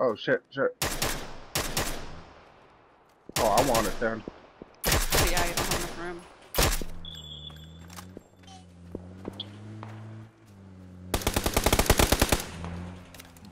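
Loud gunshots crack in quick bursts and echo.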